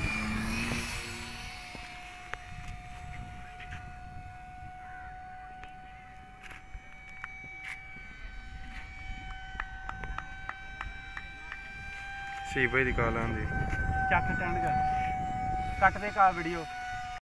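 Small propeller aircraft engines hum steadily overhead.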